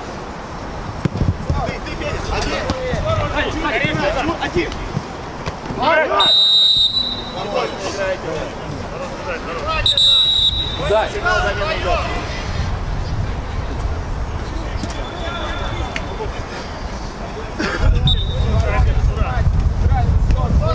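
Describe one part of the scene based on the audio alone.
Men shout to each other across an open outdoor pitch.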